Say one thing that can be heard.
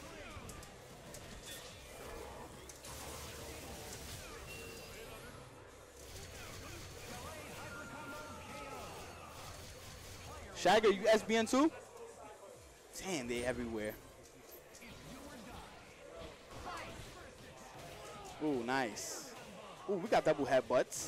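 Video game punches and energy blasts crash in quick bursts.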